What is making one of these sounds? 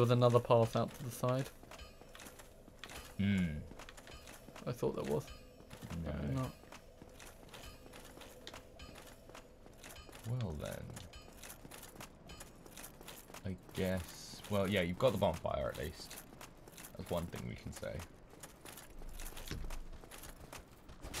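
Armoured footsteps run on stone.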